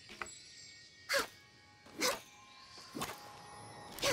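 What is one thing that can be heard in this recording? A sword swings with a swooshing whoosh.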